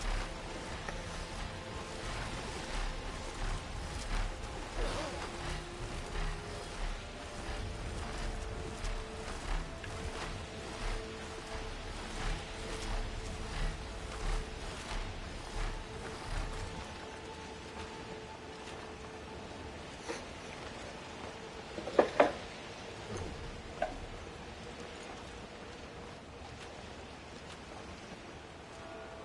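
Wind rushes past steadily.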